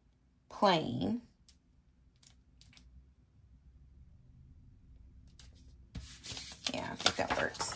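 A sticker peels and paper rustles softly under fingers.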